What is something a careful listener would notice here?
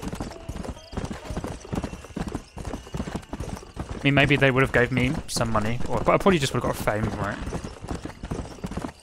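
A horse's hooves thud steadily on a dirt track.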